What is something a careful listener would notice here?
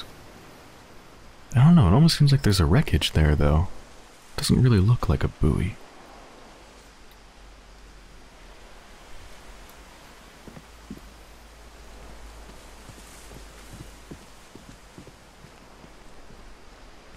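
Gentle waves lap softly on the water.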